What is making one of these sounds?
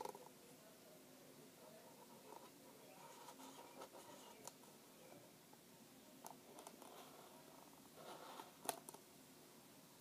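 A cardboard tube knocks lightly against something.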